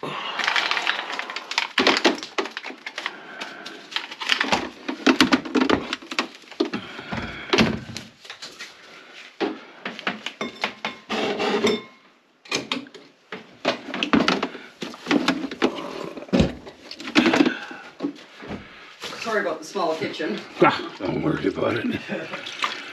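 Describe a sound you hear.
Metal tools knock and clatter under a sink.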